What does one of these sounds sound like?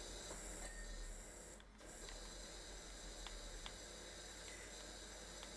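A pressure washer sprays a steady, hissing jet of water.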